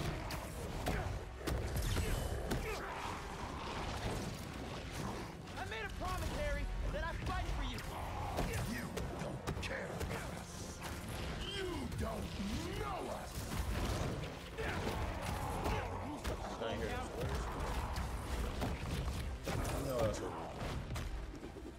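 Heavy blows and thuds land in a fast fight.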